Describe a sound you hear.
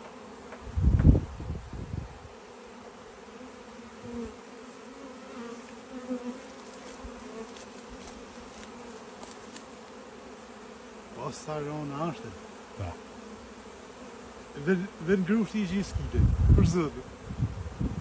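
A honeybee swarm buzzes close by.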